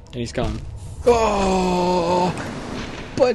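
A loud magical burst roars and rings out.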